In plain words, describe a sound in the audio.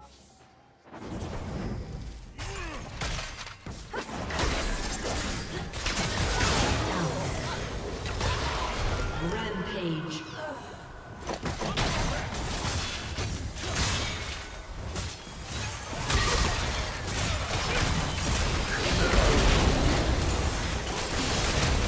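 Magic blasts and clashing hits of a video game battle burst rapidly.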